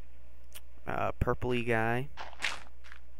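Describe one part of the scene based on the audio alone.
A game villager grunts in a low nasal voice.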